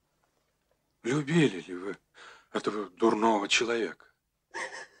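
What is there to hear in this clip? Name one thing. A middle-aged man asks a question in a low, grave voice.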